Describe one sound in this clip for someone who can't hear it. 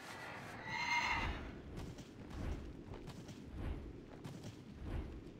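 Footsteps thud on stone at a steady pace.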